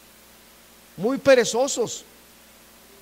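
A middle-aged man speaks briefly into a microphone.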